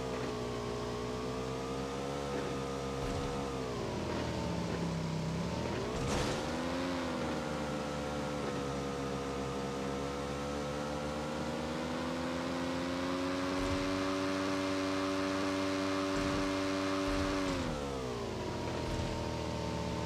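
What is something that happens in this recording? A motorcycle engine hums steadily, its pitch dropping and rising as it slows and speeds up.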